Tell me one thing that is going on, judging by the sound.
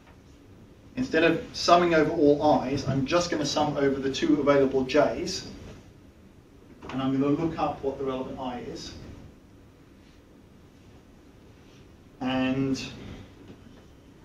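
A man speaks calmly in a lecturing tone.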